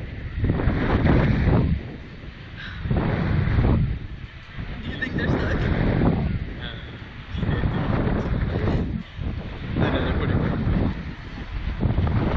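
Wind roars in gusts past a microphone.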